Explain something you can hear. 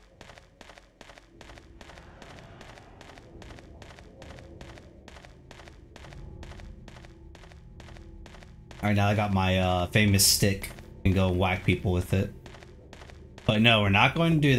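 Quick running footsteps patter on hard ground.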